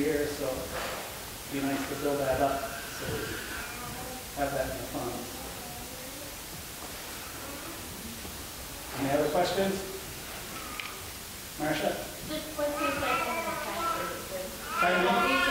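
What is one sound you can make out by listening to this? A man speaks calmly, with pauses, through a microphone.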